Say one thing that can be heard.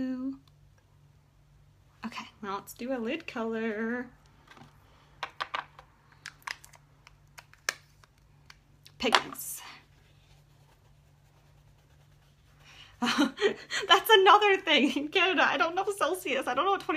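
A young woman talks calmly and close up.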